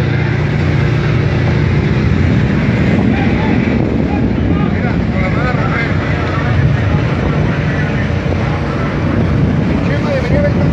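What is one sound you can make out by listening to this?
Choppy sea water splashes and rushes nearby.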